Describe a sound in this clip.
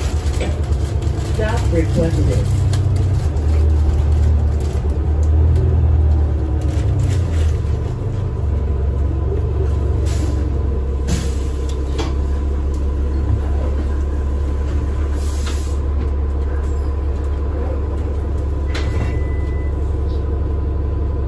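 A bus engine idles with a low, steady rumble nearby.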